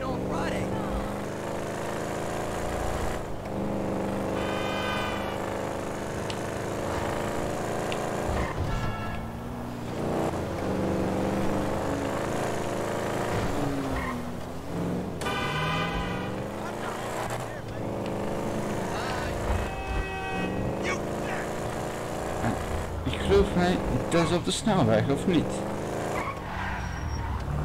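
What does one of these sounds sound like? A car engine hums steadily and rises and falls as the car speeds up and slows down.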